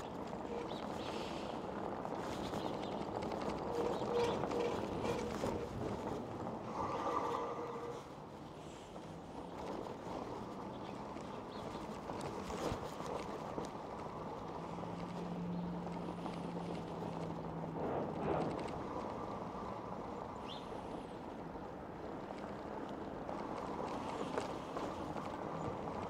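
An electric bike's tyres rumble over cobblestones.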